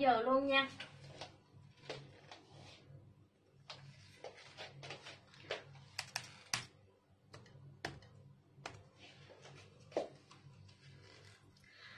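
Clothes hangers clack and clothes rustle.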